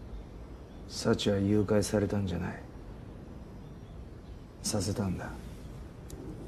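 A man speaks quietly, close by.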